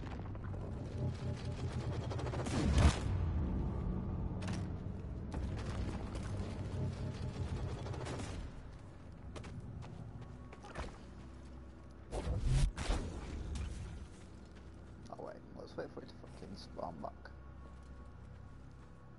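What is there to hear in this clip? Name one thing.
Footsteps scuff over rock.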